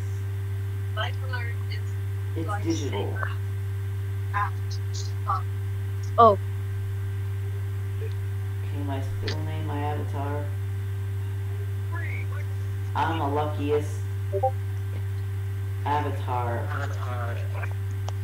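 A young man speaks quietly in short bursts into a headset microphone.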